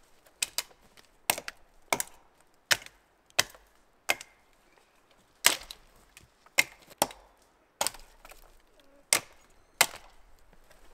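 A man chops wood with a hatchet in sharp, regular blows.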